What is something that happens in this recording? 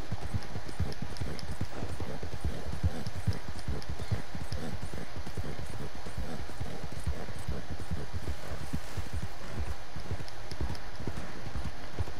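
Horse tack jingles with each stride.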